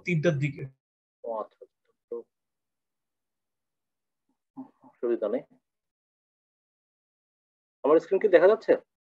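A man speaks in short bursts over an online call, with pauses between phrases.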